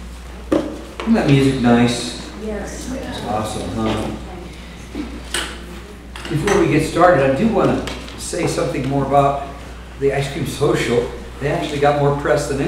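An older man speaks calmly into a microphone in a large room.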